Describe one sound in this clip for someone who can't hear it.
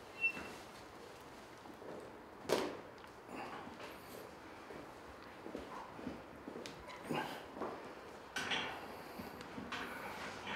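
A man exhales sharply with effort.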